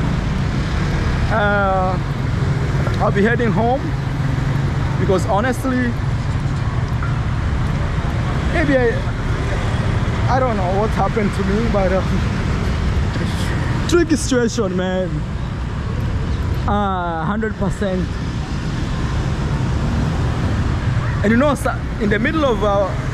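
Street traffic rumbles steadily in the background.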